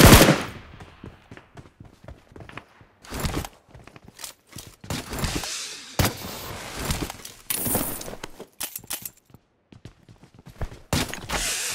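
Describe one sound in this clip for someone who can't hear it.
Footsteps thud quickly across dirt.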